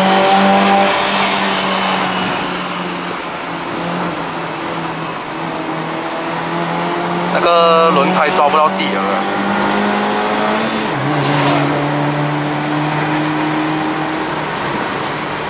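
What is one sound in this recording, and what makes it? A car engine hums steadily from inside the car, dropping in pitch once as the gears change.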